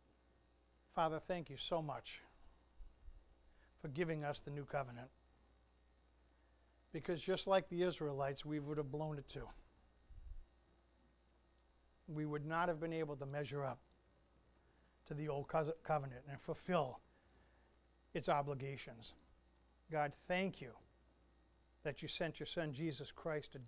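A middle-aged man speaks calmly in short phrases through a microphone in a large room.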